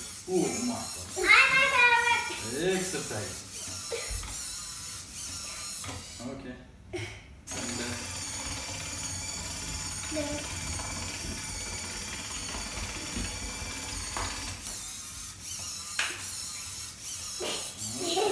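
A toy robot's small motors whir as its arms move.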